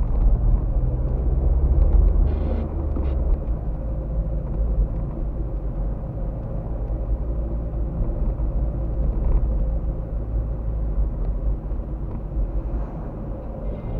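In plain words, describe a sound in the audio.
A car engine hums steadily from inside the car as it drives along.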